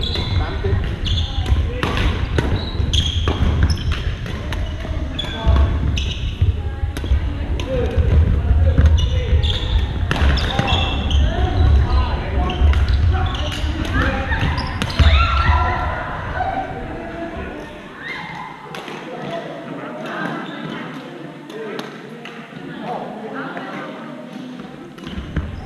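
Men call out and talk during play.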